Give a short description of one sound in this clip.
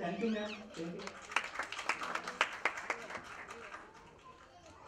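People clap their hands in a room.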